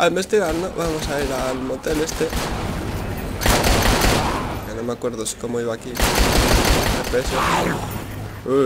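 Pistol shots ring out in quick bursts.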